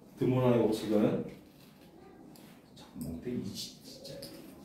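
A man speaks calmly, as if lecturing, close by.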